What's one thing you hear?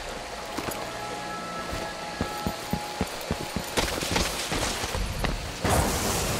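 Quick footsteps run across a hard stone floor.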